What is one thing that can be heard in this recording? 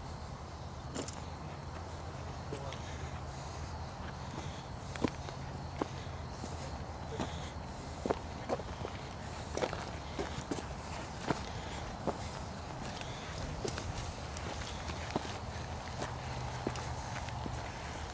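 Footsteps crunch on the ground outdoors.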